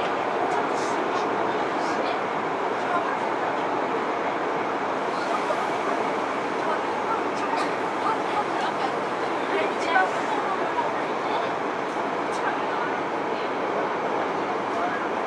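A subway train hums and rattles steadily.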